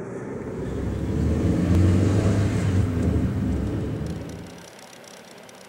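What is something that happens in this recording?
A car engine rumbles close by.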